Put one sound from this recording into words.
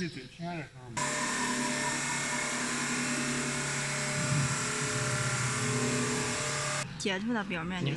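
A wood lathe cutter shaves a spinning spindle with a loud, steady hiss.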